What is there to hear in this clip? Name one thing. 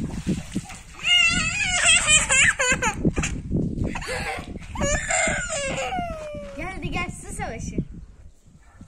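A young boy laughs and shouts excitedly close by.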